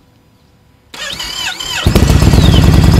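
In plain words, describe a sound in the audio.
A motorcycle engine cranks and starts.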